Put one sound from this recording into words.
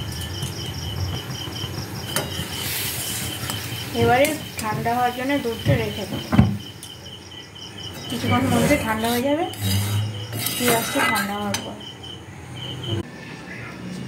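A metal spatula scrapes and stirs in a metal pan.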